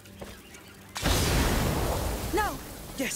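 A thrown jar bursts into flames with a loud whoosh.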